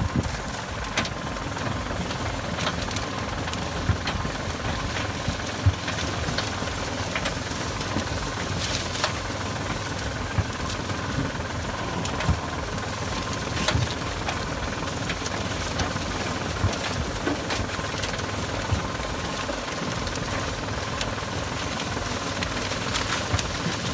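A small tractor engine rumbles steadily close by.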